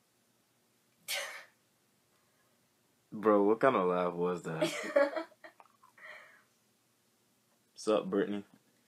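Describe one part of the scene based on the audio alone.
A teenage girl laughs and talks with animation.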